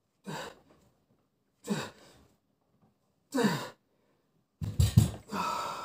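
A man grunts and exhales forcefully, close by, with each lift.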